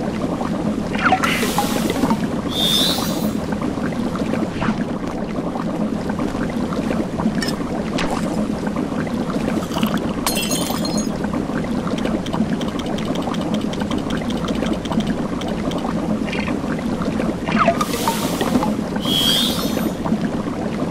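A menu whooshes open and shut with bright chimes.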